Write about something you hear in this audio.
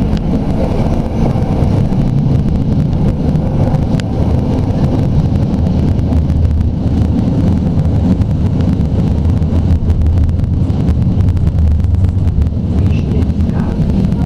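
A high-floor tram rumbles along rails, heard from inside the cab.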